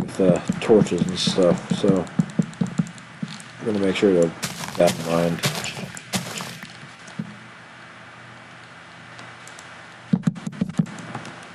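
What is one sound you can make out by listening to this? Footsteps patter on grass and wood.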